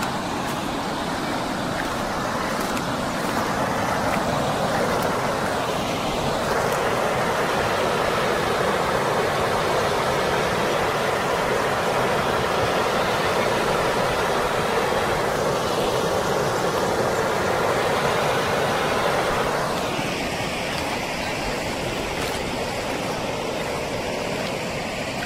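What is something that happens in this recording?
A shallow stream rushes over rocks.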